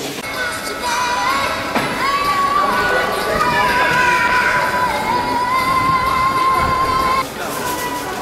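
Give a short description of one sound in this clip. A drum beats along with a brass band.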